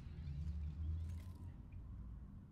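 A figure shatters like breaking glass, with shards scattering.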